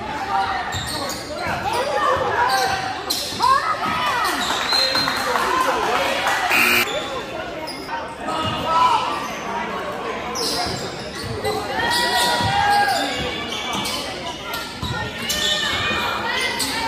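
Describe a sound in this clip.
A crowd of spectators chatters and cheers in an echoing hall.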